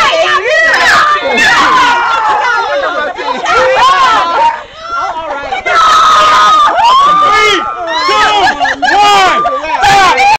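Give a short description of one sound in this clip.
Young women shout and laugh excitedly close by.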